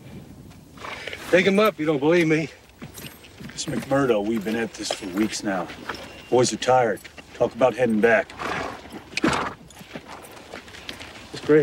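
A man speaks in a calm, low voice nearby.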